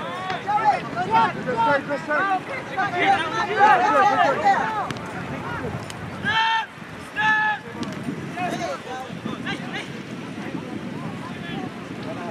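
Young players shout and call out to one another across an open field.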